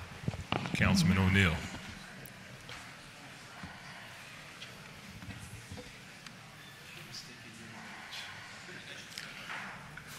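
People murmur and shuffle about in a large room.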